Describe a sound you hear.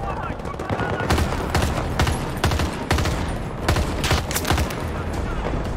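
Rifle shots crack in quick bursts.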